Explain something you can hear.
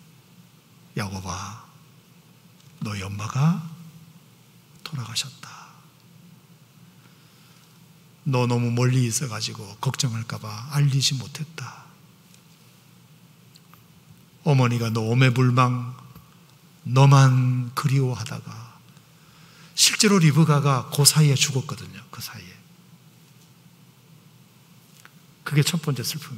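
A middle-aged man preaches with animation into a microphone, pausing between phrases.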